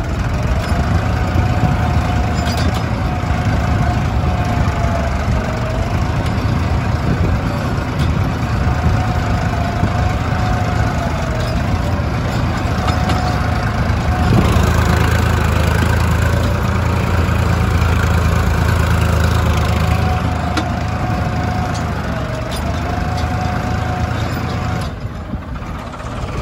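A plough scrapes and crunches through dry soil.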